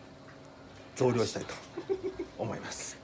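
A young man laughs close to the microphone.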